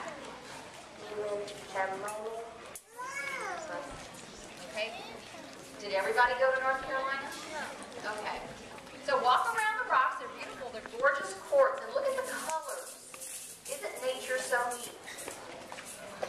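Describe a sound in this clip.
A woman speaks calmly into a microphone, heard through a loudspeaker outdoors.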